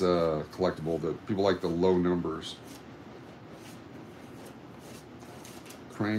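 Paper bills rustle and flick as hands count them.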